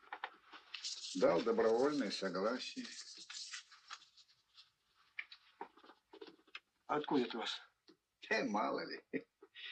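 Paper rustles as photographs are handled.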